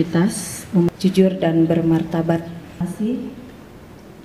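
A woman speaks firmly into a microphone over a loudspeaker, outdoors.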